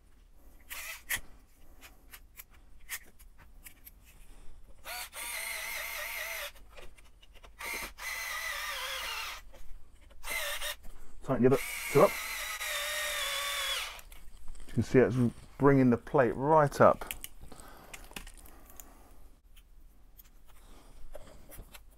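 Small metal parts click and clink as a man works with them.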